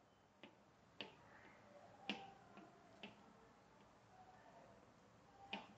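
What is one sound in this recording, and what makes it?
A pointer taps softly against paper on a board.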